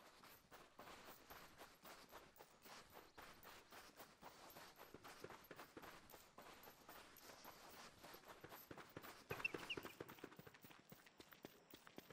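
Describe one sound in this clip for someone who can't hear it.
Quick, steady footsteps scuff across sand.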